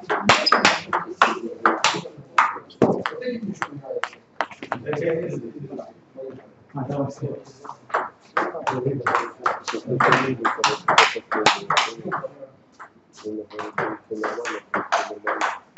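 A table tennis ball clicks sharply back and forth off paddles and the table.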